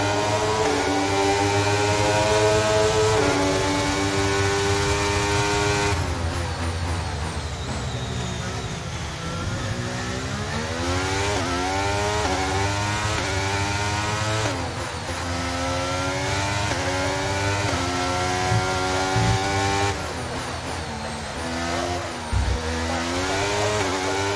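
A racing car engine screams at high revs, rising in pitch and dropping sharply with each gear change.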